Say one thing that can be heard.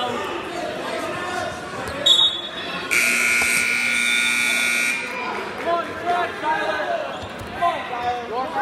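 A crowd of spectators chatters and calls out in a large echoing hall.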